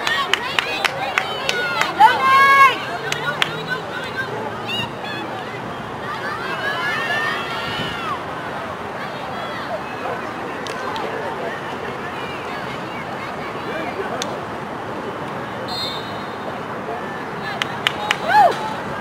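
Hockey sticks click sharply against a ball.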